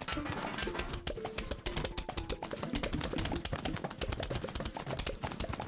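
Rapid cartoonish popping shots fire in quick succession.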